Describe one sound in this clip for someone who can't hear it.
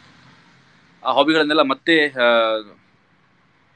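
A man speaks briefly and emotionally, close to a phone microphone.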